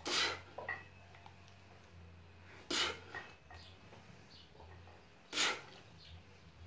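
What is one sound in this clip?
A man exhales sharply with effort, close by.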